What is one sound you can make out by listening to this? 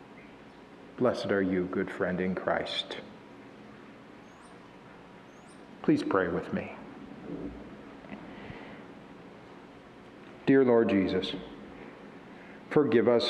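A man speaks calmly into a microphone in a reverberant hall, with pauses between phrases.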